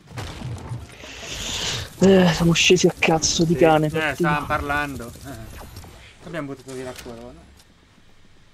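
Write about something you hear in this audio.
A man talks loudly and with animation close to a microphone.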